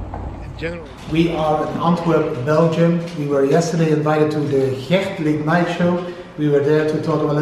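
A man talks calmly and clearly into a close microphone.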